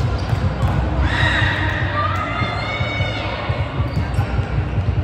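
Players call out and shout to each other during the rally.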